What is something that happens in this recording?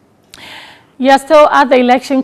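A woman speaks clearly into a microphone, like a news presenter.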